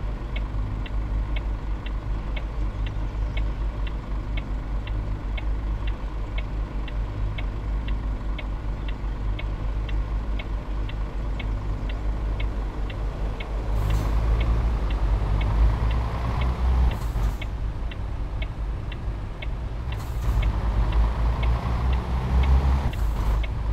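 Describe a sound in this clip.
A turn signal ticks at an even pace.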